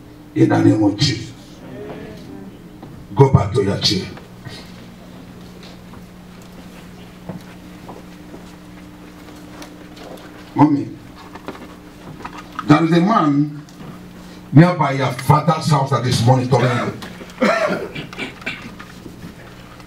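A man preaches loudly into a microphone over loudspeakers in a large echoing hall, in short bursts.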